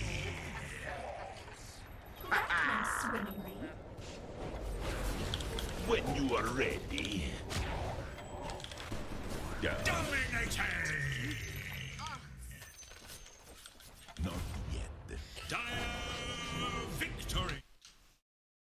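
Spells and weapons clash in a fast video game battle.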